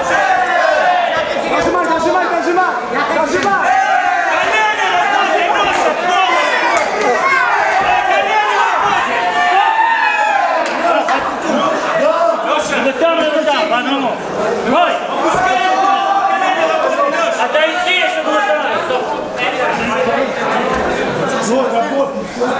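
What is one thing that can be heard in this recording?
A crowd of men and women shouts and cheers loudly in a large room.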